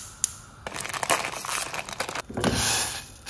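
A plastic packet crinkles and rustles as it is torn open.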